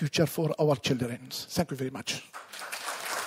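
An older man speaks calmly through a microphone in a large hall.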